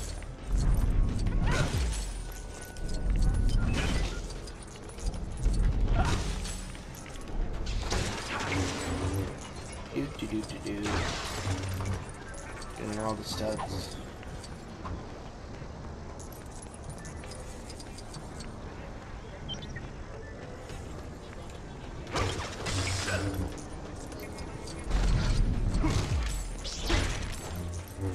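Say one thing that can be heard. Toy bricks clatter and scatter as objects break apart.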